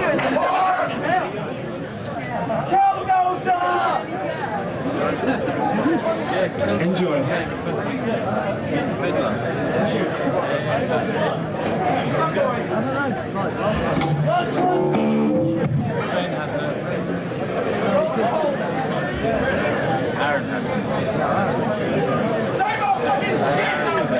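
Drums and cymbals crash.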